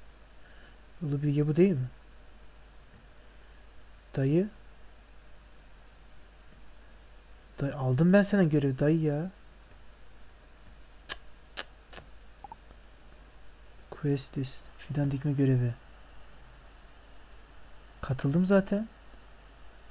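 A young man speaks calmly into a headset microphone, in short bursts.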